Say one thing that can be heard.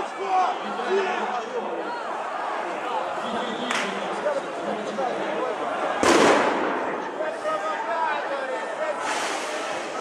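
A large outdoor crowd of men and women talks and calls out all around.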